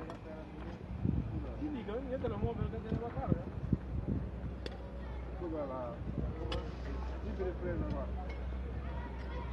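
Several men talk nearby outdoors.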